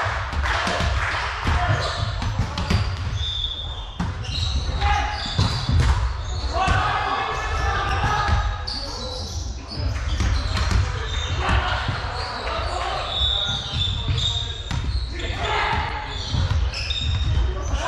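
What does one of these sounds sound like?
Young men call out and shout to each other in a large echoing hall.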